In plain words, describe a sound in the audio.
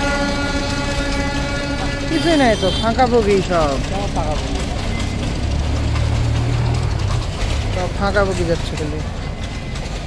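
A passenger train rumbles along the tracks.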